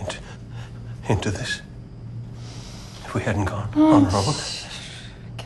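A man speaks quietly and hoarsely, close by.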